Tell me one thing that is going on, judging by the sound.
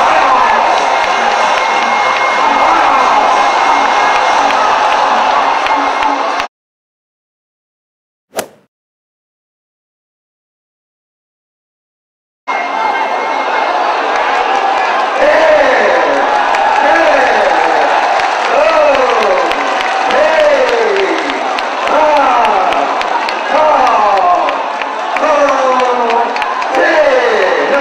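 A large crowd cheers and shouts loudly in a big arena.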